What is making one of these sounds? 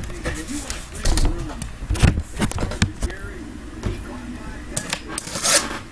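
A cardboard box rubs and knocks as hands handle it.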